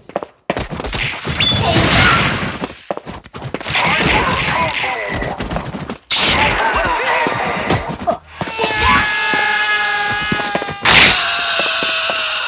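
Punches land on training dummies with sharp thuds.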